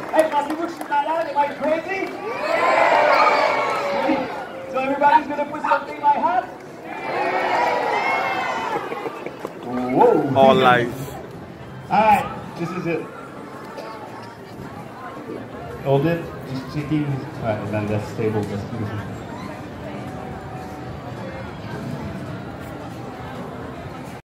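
A man talks loudly and with animation to an outdoor crowd.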